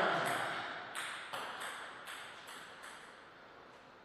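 A ball bounces on a table in quick, fading taps.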